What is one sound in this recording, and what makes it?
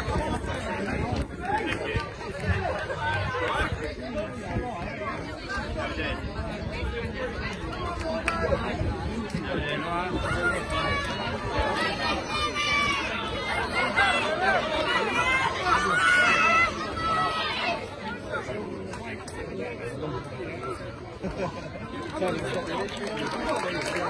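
A crowd of men and women chatters and cheers outdoors.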